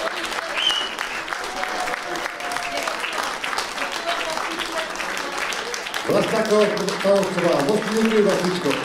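An audience claps and cheers in a hall.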